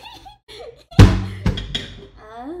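A metal pan clanks against the stove.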